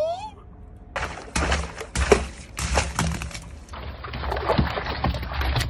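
Water sloshes and splashes inside a large balloon.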